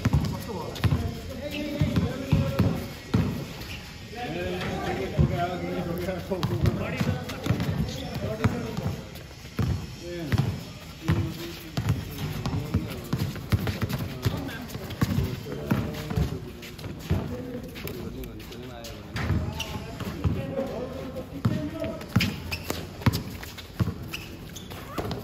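A basketball bounces on a hard court outdoors.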